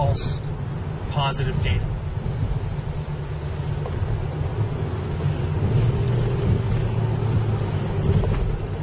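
Tyres rumble and hiss on a wet road.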